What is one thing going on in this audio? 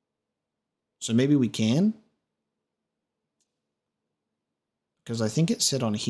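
A man speaks calmly and close into a microphone, in short bursts.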